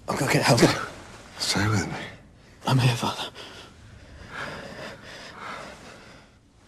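A young man speaks softly and urgently, close by.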